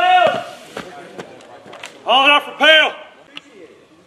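A man shouts loud commands outdoors.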